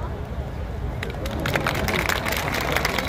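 A crowd claps and cheers.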